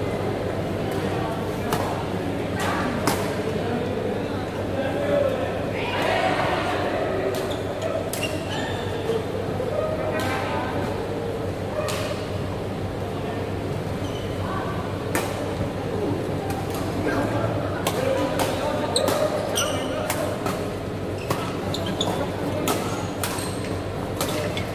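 Young men call out and chatter with each other in an echoing hall.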